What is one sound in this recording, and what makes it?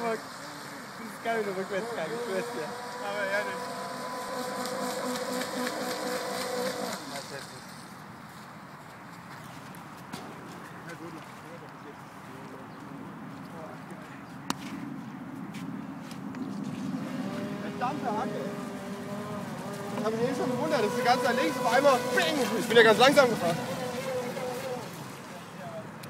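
A small model boat's electric motor whines high and buzzing, rising and falling as the boat speeds across the water.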